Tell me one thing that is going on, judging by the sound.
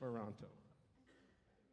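An orchestra plays a last loud chord that rings out briefly in a large hall.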